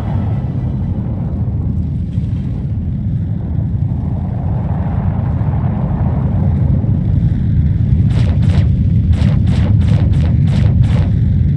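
A spacecraft's engines rumble with a deep, steady roar.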